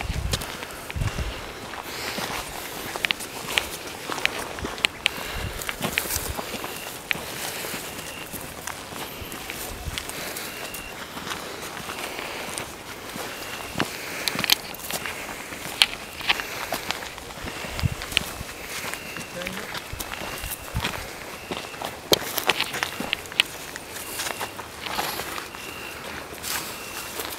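Branches and twigs rustle and snap against clothing.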